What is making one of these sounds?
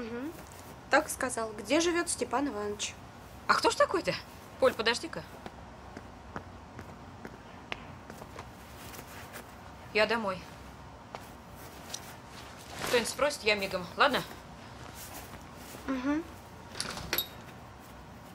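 An older woman speaks nearby.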